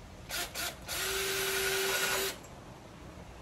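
A cordless drill whirs briefly as it drives a screw.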